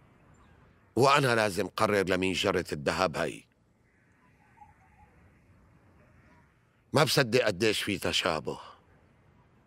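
An elderly man speaks calmly and seriously, close by.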